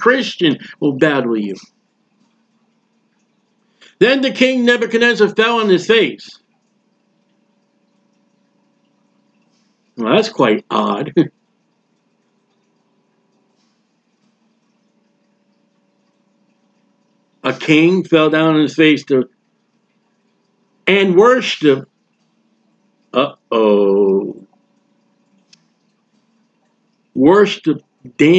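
A man speaks calmly into a close microphone, in bursts with long pauses.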